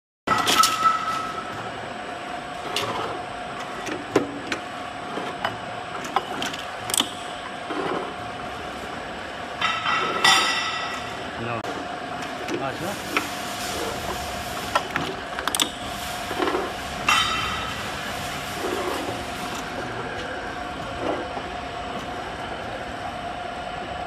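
A capping machine hums steadily.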